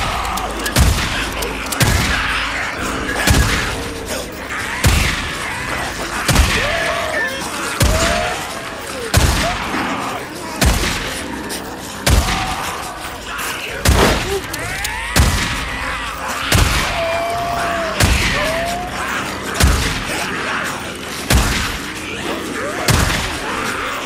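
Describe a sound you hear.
A shotgun fires again and again in loud blasts.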